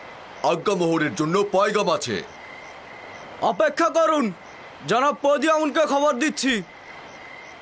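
A man calls out loudly with an echo.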